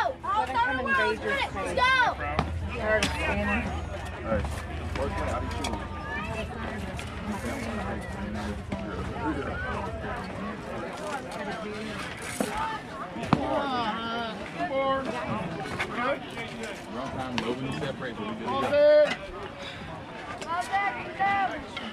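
Young players and adult spectators shout and cheer outdoors.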